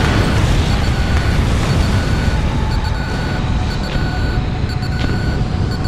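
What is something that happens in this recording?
Beeping warning tones repeat in quick bursts.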